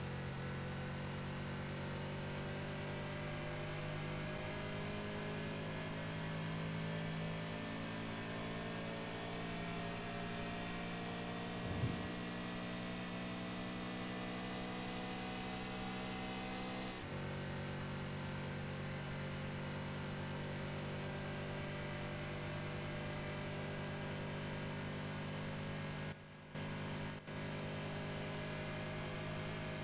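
A sports car engine roars steadily at high speed.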